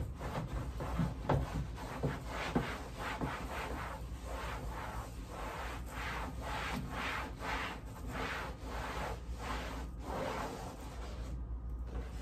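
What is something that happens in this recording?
A cloth rubs and wipes against a plastic bin.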